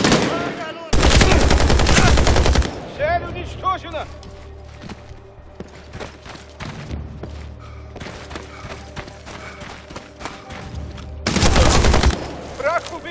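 A machine gun fires loud, rapid bursts close by.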